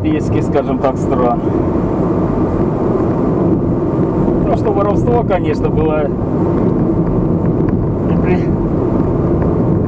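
A car's engine hums steadily while driving.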